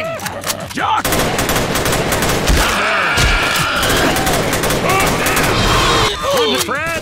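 An automatic rifle fires rapid bursts of shots.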